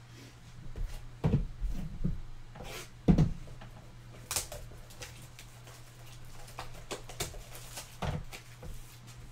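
Cards and boxes knock and tap on a table.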